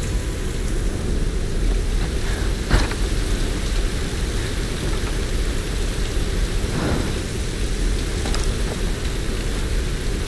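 A torch flame crackles and roars.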